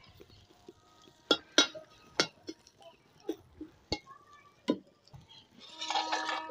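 A ladle clinks against a metal pan.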